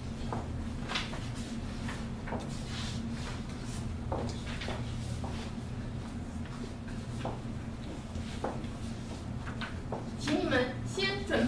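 A young woman speaks calmly to a room, heard from a distance.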